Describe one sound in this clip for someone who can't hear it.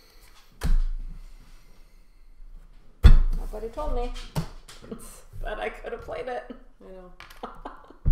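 Playing cards are laid down on a table with soft taps.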